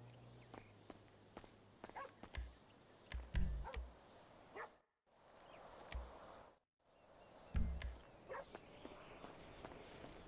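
Footsteps patter on pavement as someone runs.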